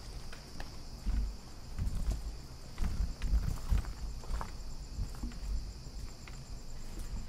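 Footsteps crunch on gritty ground.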